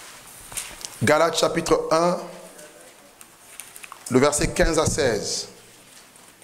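A man preaches into a microphone, speaking with emphasis in short bursts.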